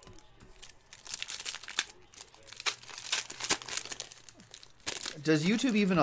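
A foil card pack crinkles as hands tear it open.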